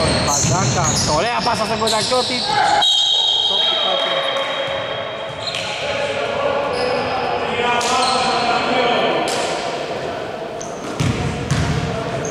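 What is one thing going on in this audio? Men shout to each other during a basketball game.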